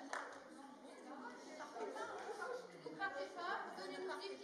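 A woman speaks with animation in a large hall.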